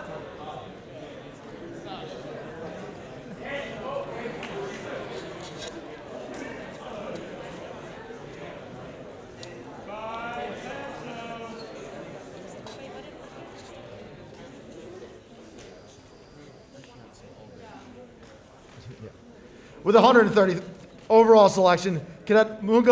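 A crowd of young adults murmur and chatter softly in a room.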